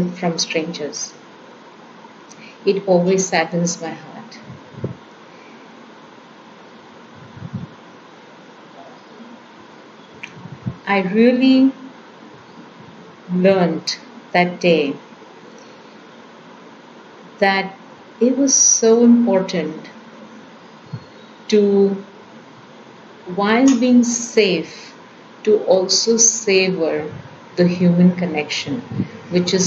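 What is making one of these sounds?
A middle-aged woman speaks calmly over an online call, pausing often.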